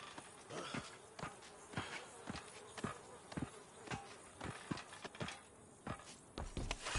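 Boots clang on metal ladder rungs as a man climbs.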